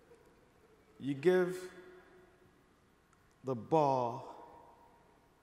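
A man speaks with animation through a microphone, echoing in a large hall.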